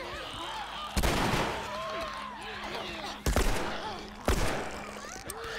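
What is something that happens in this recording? Gunshots fire loudly, several times.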